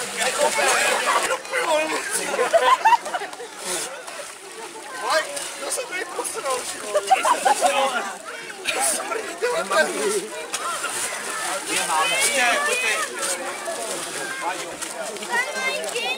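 Water splashes as men wade through a cold pool.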